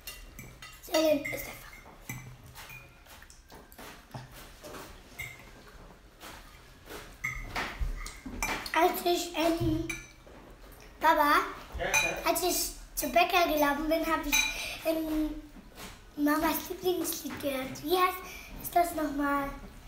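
A young girl talks close by with animation.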